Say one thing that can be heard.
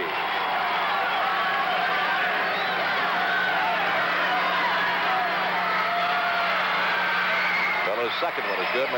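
A large crowd chatters and shouts in a big echoing arena.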